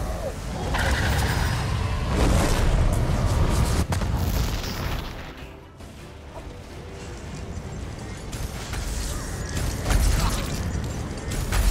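Electric bolts crackle and zap loudly.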